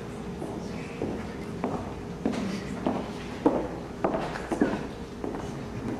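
Heeled shoes click on a wooden stage floor in a hall with a slight echo.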